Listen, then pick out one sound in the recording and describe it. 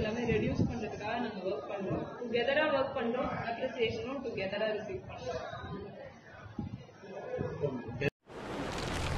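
A man speaks calmly over a phone line.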